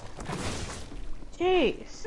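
A magical burst crackles and hisses.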